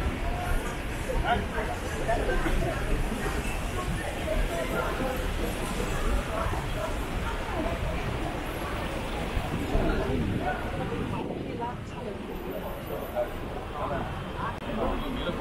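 Voices of a crowd of passers-by chatter nearby outdoors.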